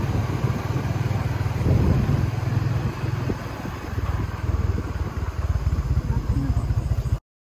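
A swollen river rushes steadily.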